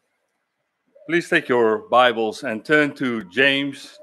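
A man speaks clearly into a microphone in a calm, addressing tone.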